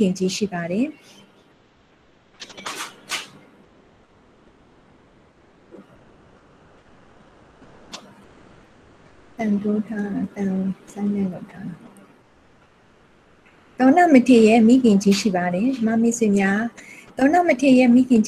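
A woman speaks calmly and clearly into a microphone.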